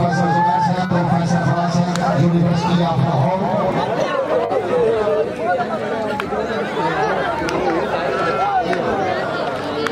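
A large outdoor crowd of men shouts and cheers.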